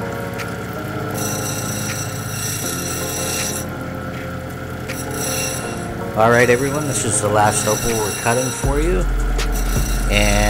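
A small stone scrapes against a spinning grinding wheel.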